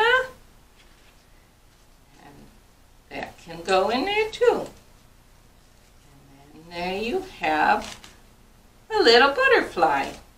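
An older woman talks calmly and close by.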